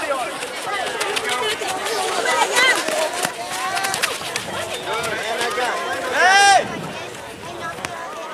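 Young players and spectators shout and call out across an open field.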